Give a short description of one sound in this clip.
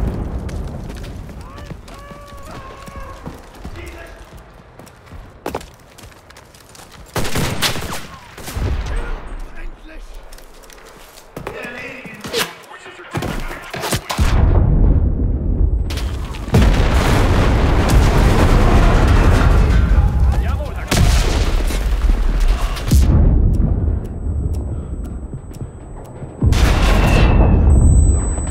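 Gunfire cracks loudly in bursts.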